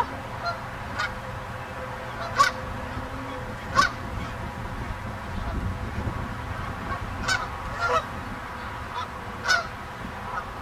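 A goose splashes softly in the water as it preens.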